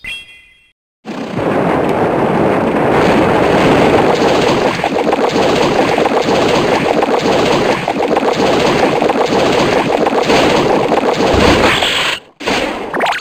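Loud rumbling and crashing game battle effects play on and on.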